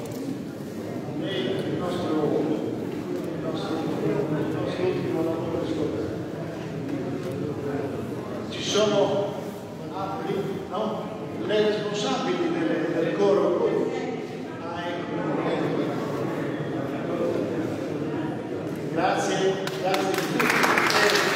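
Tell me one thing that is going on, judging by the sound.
A tambourine jingles along with the singing.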